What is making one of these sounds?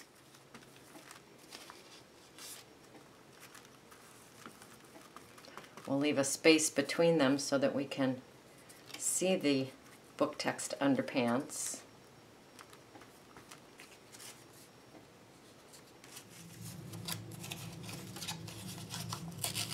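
A brush dabs glue onto paper.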